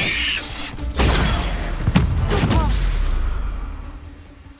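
A magical blast crackles and roars loudly, then fades away.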